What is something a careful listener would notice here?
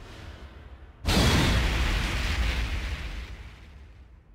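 A bright burst booms.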